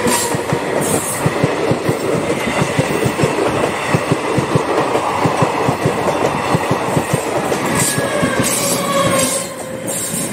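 A passing train rumbles and clatters loudly on the rails nearby.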